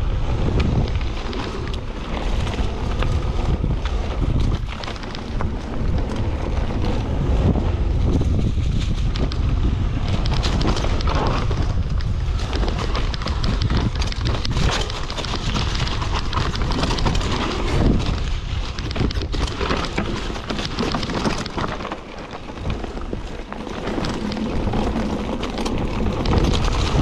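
Bicycle tyres roll and crunch over dry leaves and dirt.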